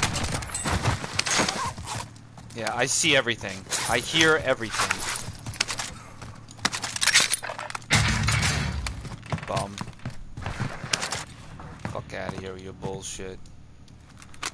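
Gear clicks and rattles as items are picked up.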